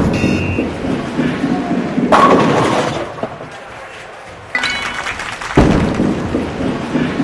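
A bowling ball rolls down a lane.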